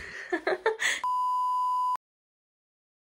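A steady high test tone beeps.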